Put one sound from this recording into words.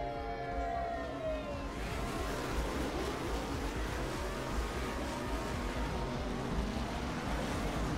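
Racing craft engines roar and whine at high speed.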